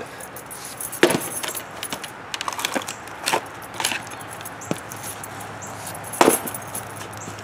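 An axe strikes a log with sharp thuds.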